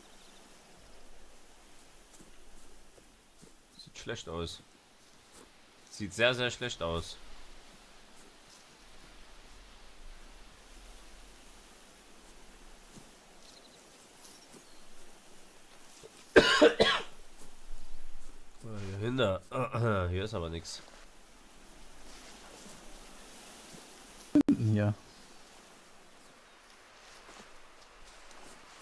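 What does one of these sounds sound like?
Footsteps rustle through tall grass and brush.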